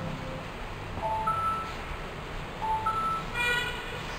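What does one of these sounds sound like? A short jingle plays from a television.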